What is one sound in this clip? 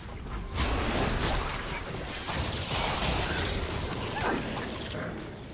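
Magic spell effects whoosh and crackle in a video game.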